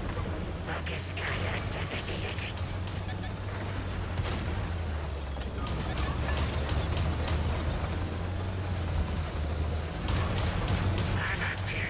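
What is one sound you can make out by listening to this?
A tank cannon fires with sharp booming blasts.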